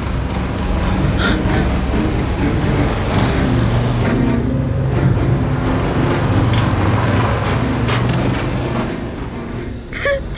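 A truck engine rumbles.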